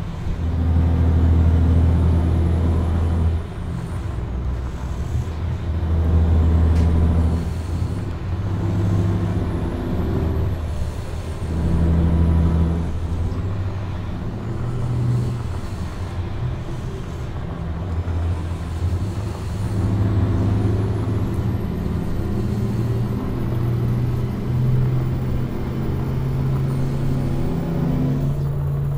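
A truck engine drones steadily, rising and falling in pitch as it revs.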